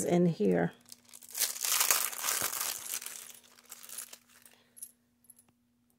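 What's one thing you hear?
Plastic bags crinkle and rustle close by.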